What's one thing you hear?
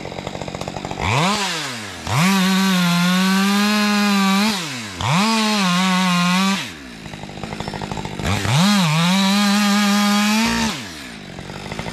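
A chainsaw revs up loudly in bursts, cutting through wood nearby.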